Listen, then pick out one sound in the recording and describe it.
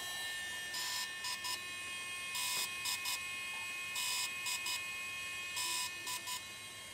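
An electronic device beeps in a repeating pattern of one long tone followed by two short ones.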